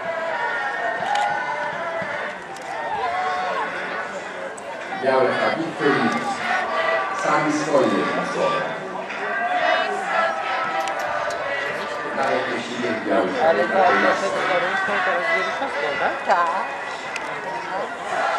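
A large crowd of men and women sings together outdoors.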